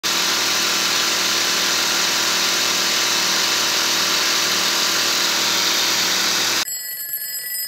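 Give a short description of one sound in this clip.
An air pump hums steadily.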